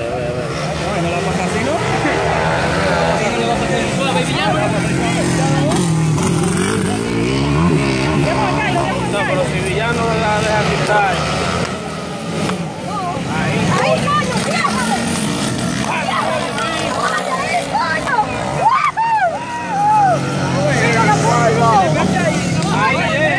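Dirt bike engines rev and whine loudly as they race past.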